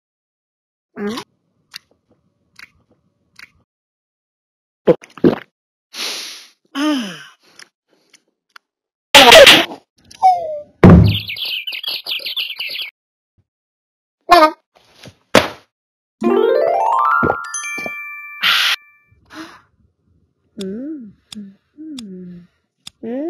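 Playful cartoon sound effects chirp, pop and jingle in short bursts.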